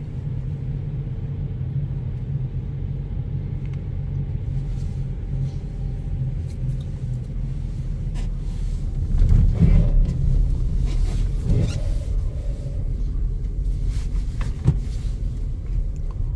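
A car's tyres roll over packed snow, heard from inside the car.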